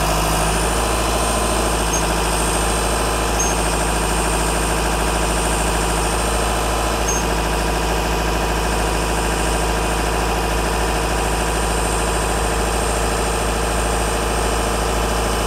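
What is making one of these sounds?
A machine's engine drones steadily nearby.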